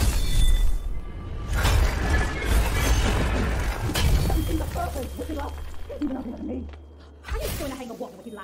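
A huge metal ball rolls with a deep rumble.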